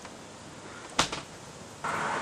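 Cardboard scrapes softly across a board.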